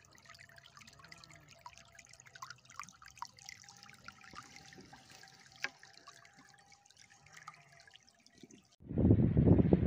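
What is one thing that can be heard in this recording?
Water trickles gently in a small stream.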